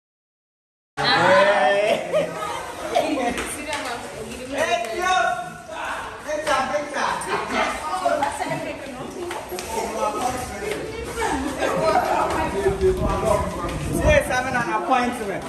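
A crowd of teenagers chatter and shout in an echoing stairwell.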